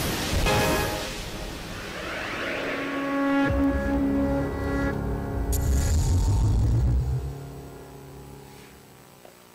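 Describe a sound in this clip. Music plays over loudspeakers and fades away.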